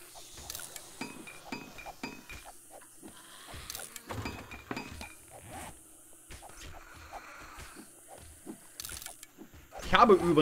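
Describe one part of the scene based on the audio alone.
Short soft beeps and clicks sound as game menu items are picked.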